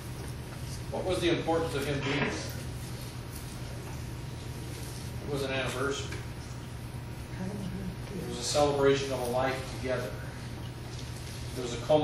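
A middle-aged man speaks to an audience in a room with some echo, pausing between phrases.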